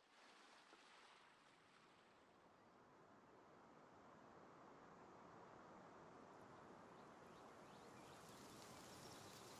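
Wind rushes steadily past, slowly growing louder.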